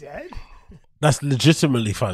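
A second man laughs heartily into a microphone.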